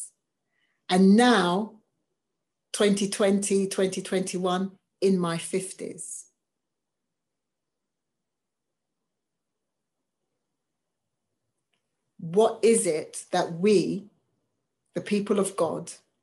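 A woman speaks calmly over an online call, pausing at length between phrases.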